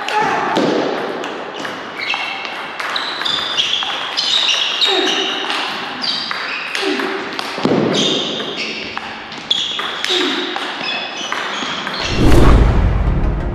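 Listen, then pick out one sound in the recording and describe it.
Table tennis balls click sharply on tables and paddles in quick rallies.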